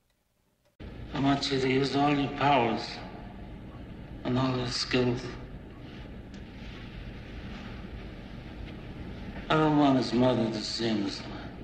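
A middle-aged man speaks slowly and gravely close by.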